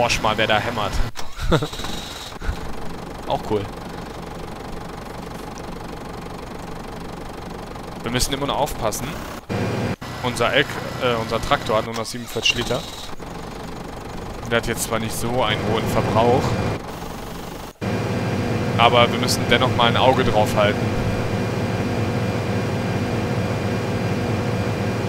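A tractor engine drones.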